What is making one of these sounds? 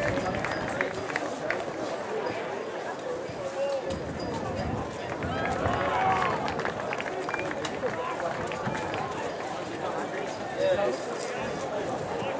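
A middle-aged man speaks to the crowd through a microphone.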